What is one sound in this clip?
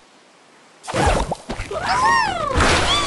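Something is flung with a whoosh.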